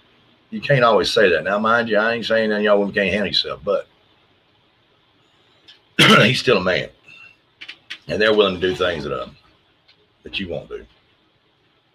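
A middle-aged man speaks calmly into a microphone over an online call, pausing between phrases.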